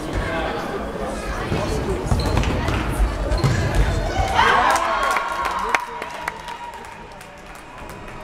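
Shoes squeak on a hard floor as players run.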